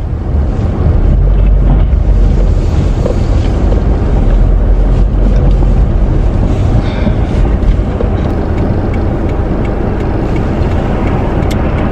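A car engine rumbles low and steadily.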